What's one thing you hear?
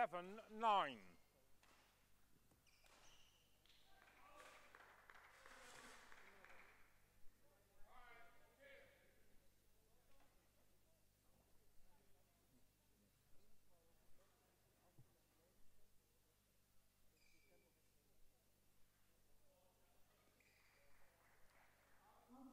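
People talk quietly in a large echoing hall.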